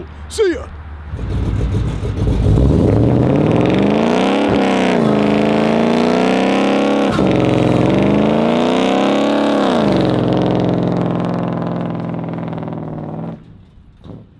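A truck engine revs hard and roars loudly.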